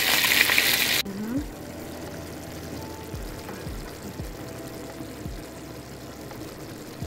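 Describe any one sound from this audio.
A thick sauce bubbles gently as it simmers in a pan.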